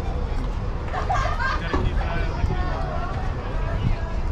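Young girls call out from across an open field.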